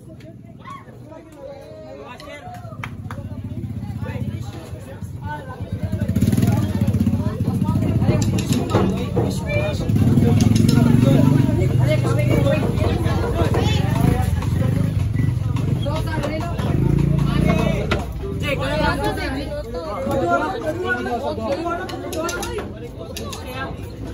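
A marching band drum line plays snare and tenor drums outdoors.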